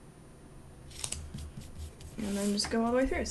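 Paper rustles as it is shifted.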